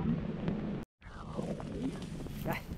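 Footsteps crunch through dry grass and reeds.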